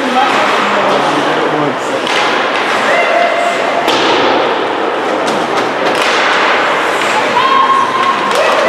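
Children in the stands chatter and call out nearby.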